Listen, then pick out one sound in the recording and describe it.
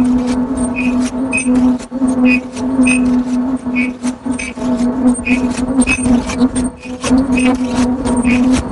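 A machine clicks and clatters in a fast, even rhythm.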